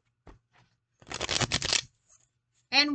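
Plastic packaging crinkles in a person's hands.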